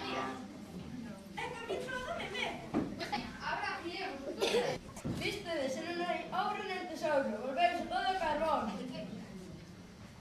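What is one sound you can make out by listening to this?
A young girl speaks on a stage in a hall.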